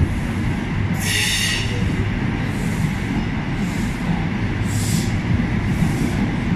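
A train rushes past at speed with a loud rumble.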